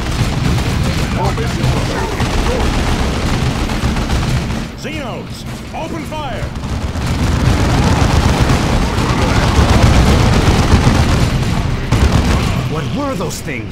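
Gunfire rattles in a battle.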